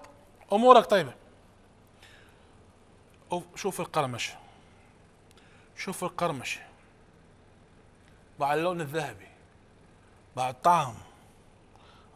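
A man speaks calmly and with animation into a close microphone, in short phrases with pauses.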